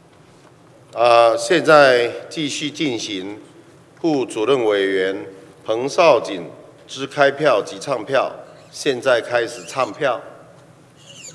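A man reads out calmly through a microphone.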